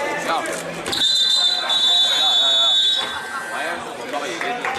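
A loud buzzer sounds steadily for a few seconds.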